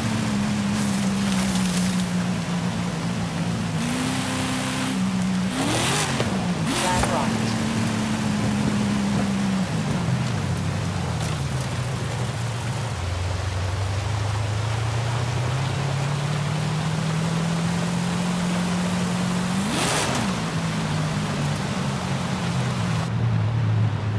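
Tyres crunch and slide over muddy gravel.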